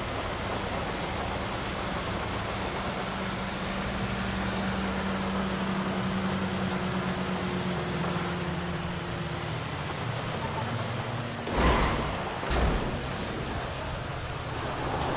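A truck engine drones steadily as it drives along a road.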